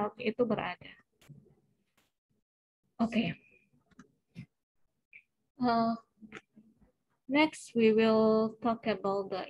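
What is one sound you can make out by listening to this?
A young woman speaks calmly into a microphone, heard close up.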